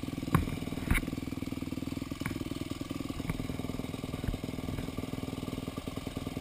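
A dirt bike engine buzzes steadily at high revs.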